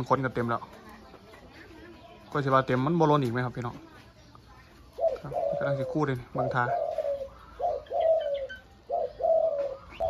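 A dove coos close by in short, repeated bursts.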